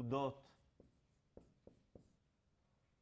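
A marker taps against a whiteboard.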